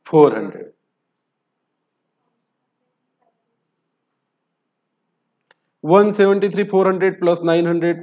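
A man speaks calmly and clearly into a close microphone, pausing between phrases.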